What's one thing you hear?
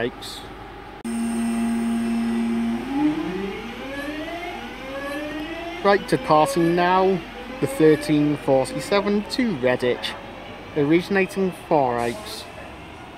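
An electric train pulls away, its motors whining and rising in pitch.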